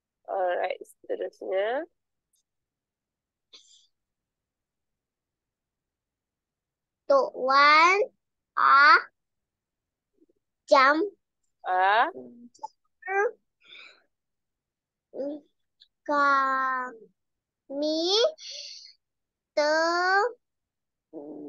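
A young woman speaks slowly and clearly over an online call.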